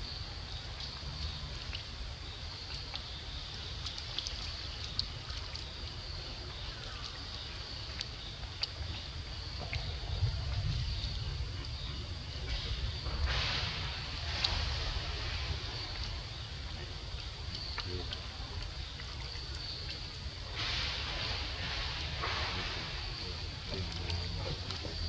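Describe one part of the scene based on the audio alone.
Water splashes softly as young monkeys wade through a shallow puddle.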